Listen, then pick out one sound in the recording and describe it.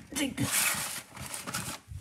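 A paper package rustles as a hand picks it up.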